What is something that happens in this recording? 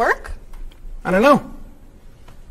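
A young man answers briefly.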